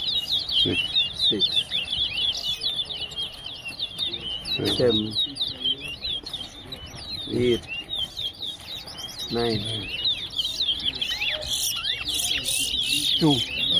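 Caged songbirds chirp and trill rapidly and continuously close by.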